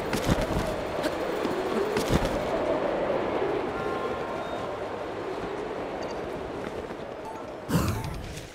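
Wind rushes steadily past a falling figure.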